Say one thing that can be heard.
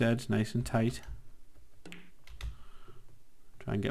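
Billiard balls click together.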